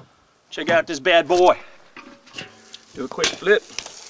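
A metal grill lid clanks open.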